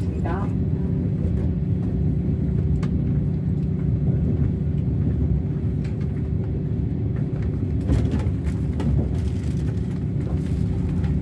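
A train rumbles steadily at speed, heard from inside a carriage.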